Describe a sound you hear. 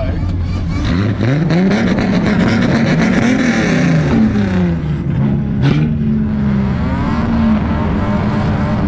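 A modified car engine revs up and down.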